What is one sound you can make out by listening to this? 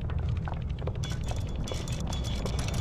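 A metal dial clicks rapidly as it turns.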